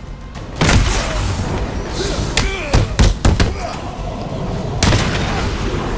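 Heavy punches land with hard thuds in quick succession.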